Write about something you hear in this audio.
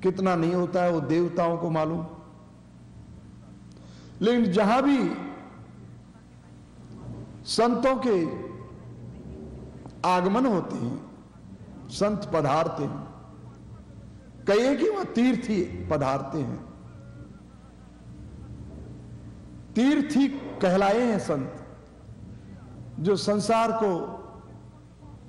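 An elderly man chants slowly into a microphone in short phrases with pauses.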